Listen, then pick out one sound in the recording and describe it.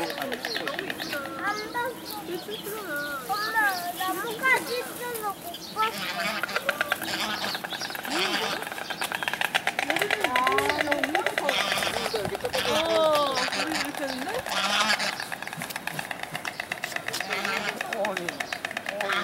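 Cranes call out with loud, trumpeting cries.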